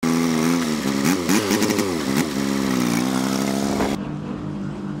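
A tractor engine runs and revs up and down.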